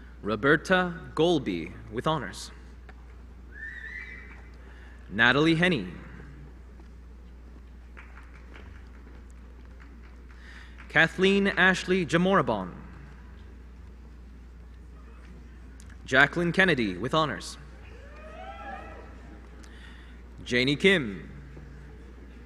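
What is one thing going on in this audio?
A man reads out names through a microphone in a large echoing hall.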